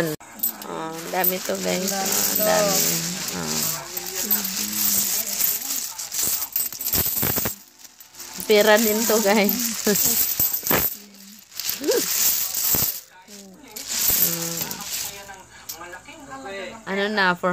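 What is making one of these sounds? Metal coins clink and jingle as they pour and are handled.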